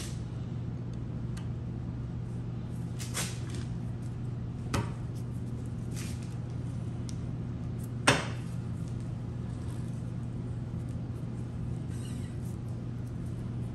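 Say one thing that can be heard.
A metal wrench clinks against metal.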